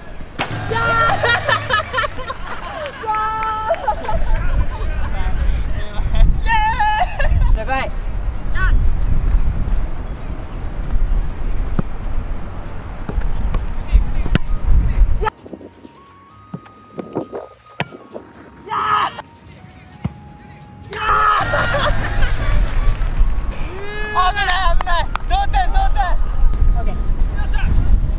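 A young man cheers and shouts with excitement outdoors.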